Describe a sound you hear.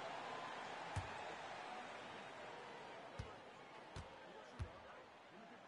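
A basketball bounces a few times on a hardwood floor.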